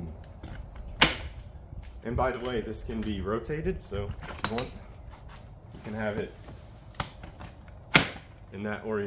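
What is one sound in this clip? A stroller frame clicks and snaps as it folds.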